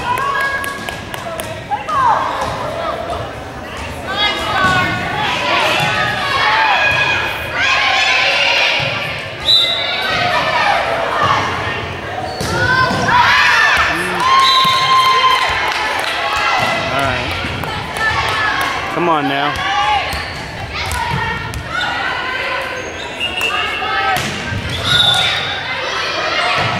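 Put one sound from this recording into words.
Young women shout and cheer throughout a large echoing gym.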